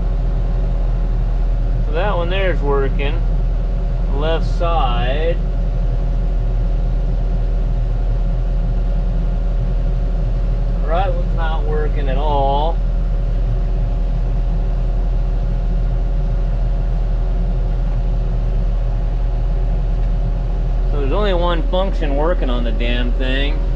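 A tractor engine drones steadily inside a cab.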